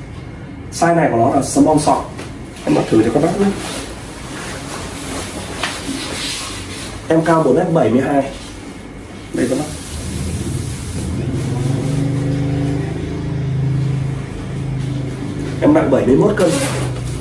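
Fabric rustles as a jacket is put on and adjusted.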